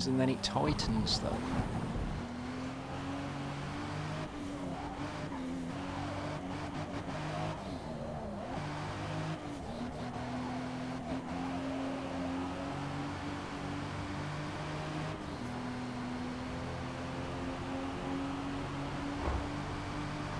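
A car engine hums steadily and rises in pitch as it speeds up, shifting gears now and then.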